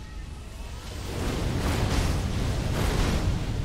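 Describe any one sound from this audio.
Steel blades clash and swish.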